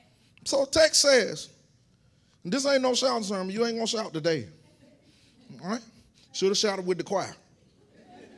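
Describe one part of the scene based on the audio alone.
A man preaches with feeling through a microphone in an echoing hall.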